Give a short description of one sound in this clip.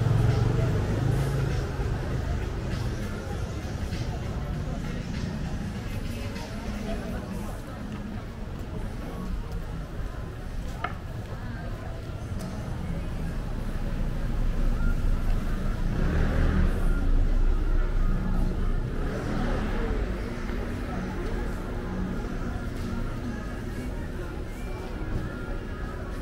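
Footsteps scuff on a paved street outdoors.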